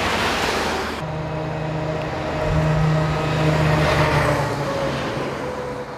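A truck rumbles past close by on a wet road.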